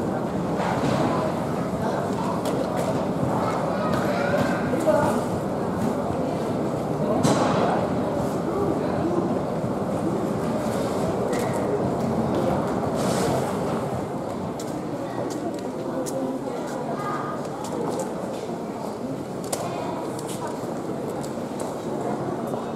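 A crowd of people chatters indoors in a large echoing hall.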